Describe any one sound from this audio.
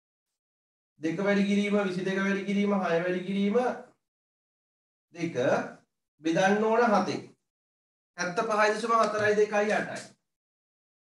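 A man speaks calmly and explains, close by.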